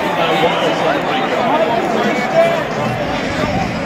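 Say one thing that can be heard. A young man shouts and cheers close by.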